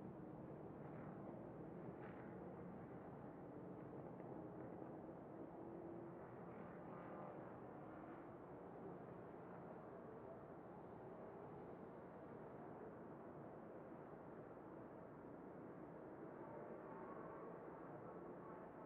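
A racing engine roars loudly up close, rising and falling in pitch as it shifts gears.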